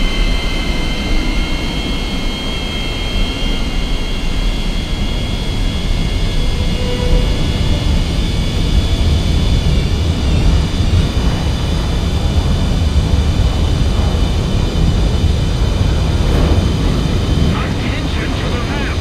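Jet engines roar loudly and steadily, with a high whine.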